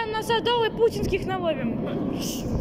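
A young boy calls out loudly nearby.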